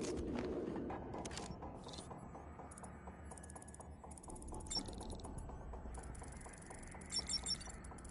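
Electronic beeps and chirps sound from a handheld hacking device.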